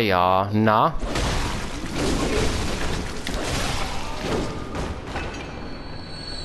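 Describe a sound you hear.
A sword swings and slashes into flesh with wet impacts.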